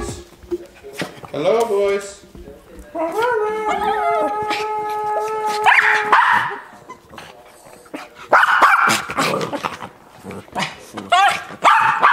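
Small dogs growl while playing.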